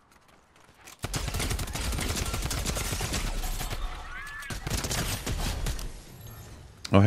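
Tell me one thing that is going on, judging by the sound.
Rapid gunshots crack in a game.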